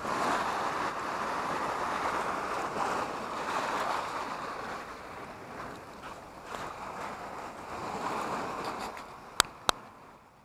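Shallow sea water laps against a rocky shore.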